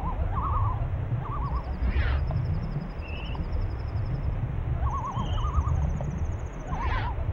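A low underwater rumble goes on steadily.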